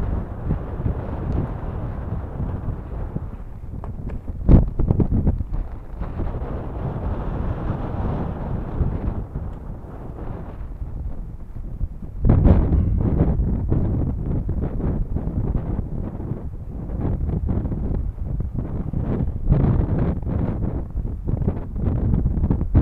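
Strong wind rumbles and buffets outdoors.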